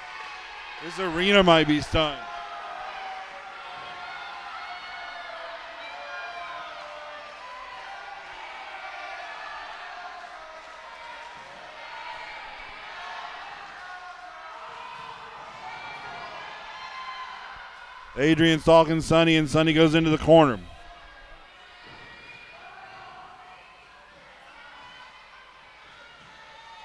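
A crowd of spectators murmurs and chatters in a large echoing hall.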